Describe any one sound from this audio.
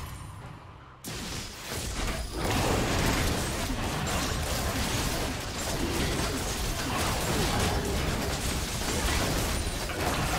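Spell blasts and hits crackle and boom in a fast video game battle.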